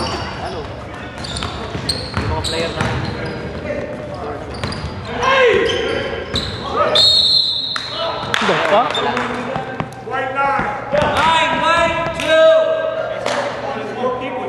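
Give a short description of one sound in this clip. A basketball bounces and thuds on the floor.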